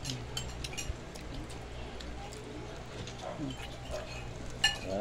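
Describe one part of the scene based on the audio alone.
A young child chews food noisily up close.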